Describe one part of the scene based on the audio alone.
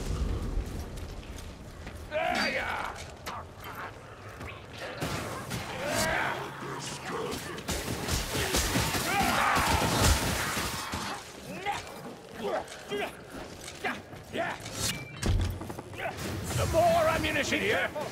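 Heavy blows thud and clang in a fight.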